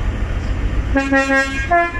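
A train horn sounds loudly in short bursts.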